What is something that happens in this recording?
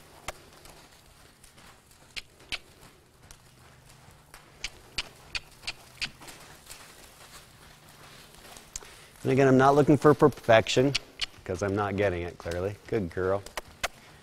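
Hooves thud softly on soft dirt as a horse walks.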